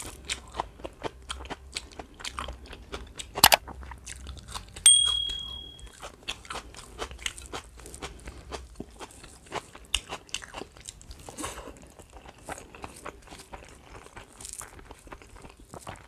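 Fingers squish and mix wet rice and food.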